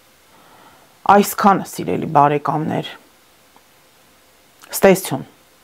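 A woman speaks calmly and close into a microphone.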